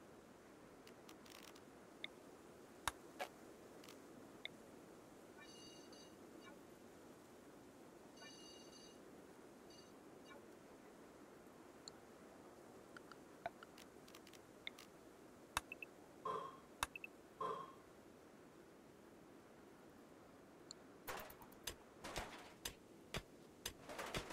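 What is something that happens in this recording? Short game menu clicks and blips sound now and then.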